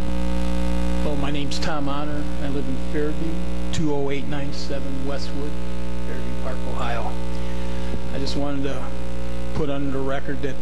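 A man speaks calmly into a microphone, heard through a loudspeaker in a large echoing hall.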